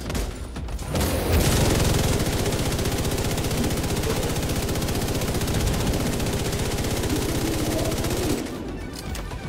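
A rifle fires in a rapid, steady burst of shots.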